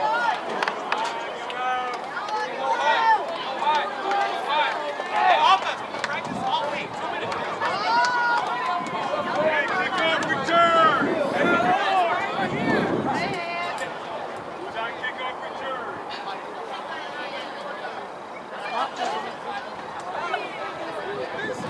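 Men and women chat nearby outdoors.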